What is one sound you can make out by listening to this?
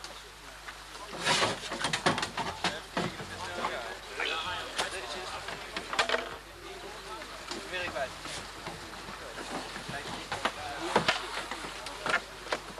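Plastic kayaks knock and scrape as people climb in.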